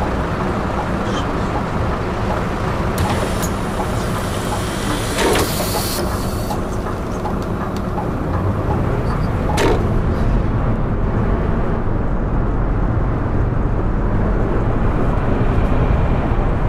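A bus engine rumbles steadily and grows louder as the bus pulls away.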